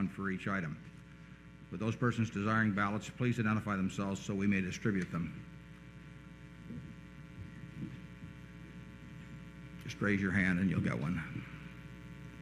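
An elderly man reads out and speaks calmly into a microphone, with pauses.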